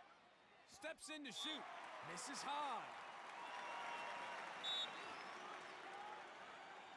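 A large crowd cheers steadily in a stadium.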